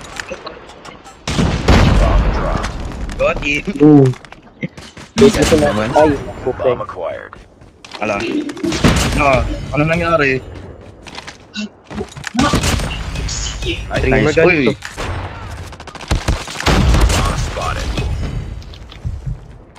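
Sniper rifle shots crack loudly, one after another.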